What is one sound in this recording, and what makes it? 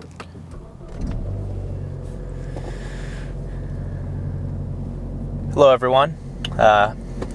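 A car engine idles with a steady low hum inside the cabin.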